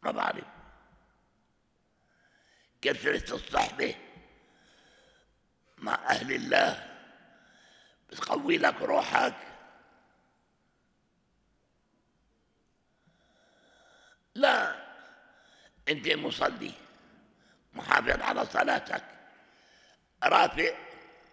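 An elderly man preaches emphatically through a microphone in bursts with pauses.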